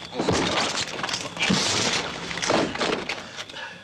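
Punches land in a scuffle.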